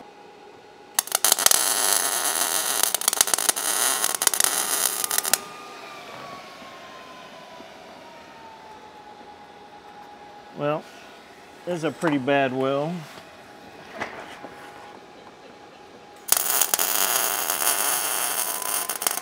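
A welding arc crackles and sizzles loudly.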